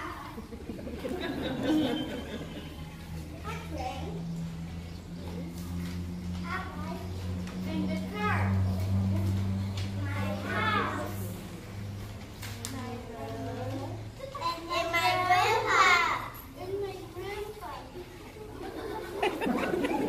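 Young children speak lines in turn nearby.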